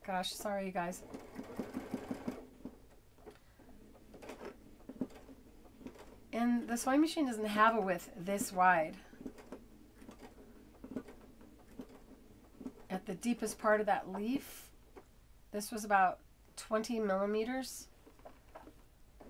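An embroidery machine hums and taps rapidly as it stitches.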